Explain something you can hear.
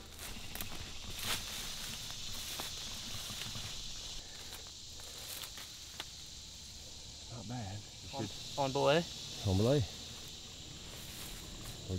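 Leaves and twigs rustle underfoot as a man walks through undergrowth.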